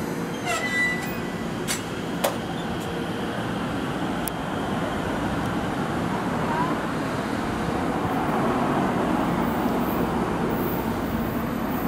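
An electric train pulls away with a low, steady rumble that slowly grows.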